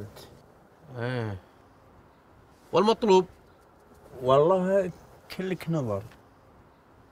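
A young man speaks quietly up close.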